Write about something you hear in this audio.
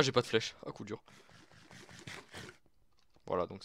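A game character munches on food with crunchy bites.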